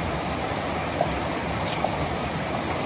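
Hiking poles click on stones.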